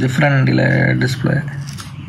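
Protective plastic film peels off with a soft crackle.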